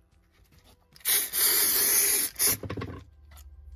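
An aerosol can sprays with a loud hiss.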